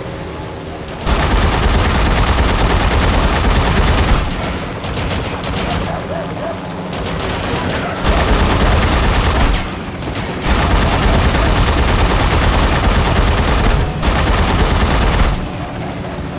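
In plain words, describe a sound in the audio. A rotary machine gun fires in long, rapid bursts.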